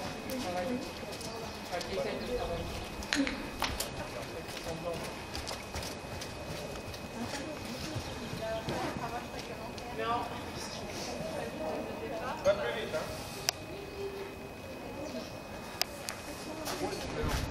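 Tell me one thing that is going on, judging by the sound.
Horse hooves thud on soft sand.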